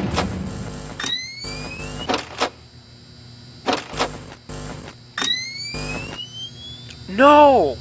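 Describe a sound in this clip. A security monitor flips up with a rising electronic sweep.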